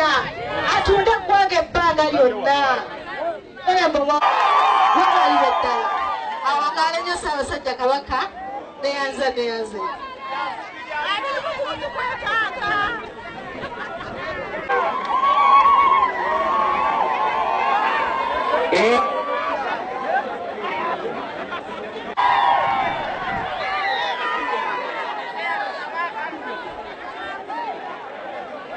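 A large outdoor crowd cheers and chants loudly.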